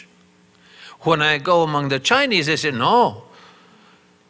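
An elderly man speaks with animation into a microphone in a large echoing hall.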